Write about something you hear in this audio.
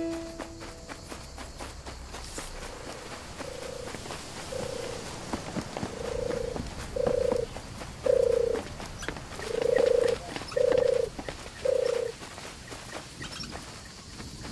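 Quick light footsteps patter on dirt and wooden steps.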